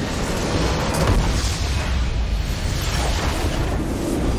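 A huge explosion booms and rumbles.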